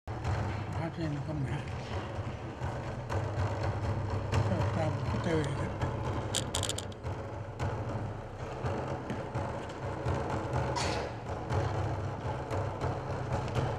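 A hand drum is beaten with a steady beat.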